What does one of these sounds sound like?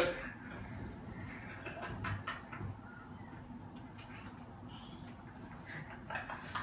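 Two young men laugh and giggle close by.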